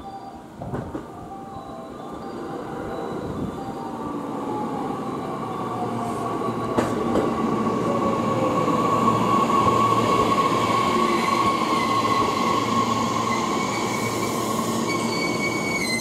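A train approaches and rolls in with a growing rumble.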